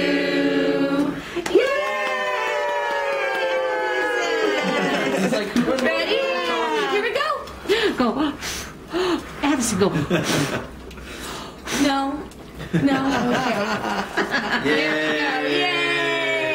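Several adults sing together close by.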